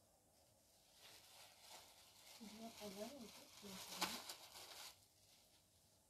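A plastic wrapper rustles as it is handled.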